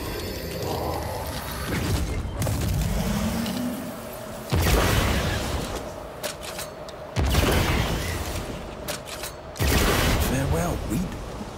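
A magical blast whooshes and crackles.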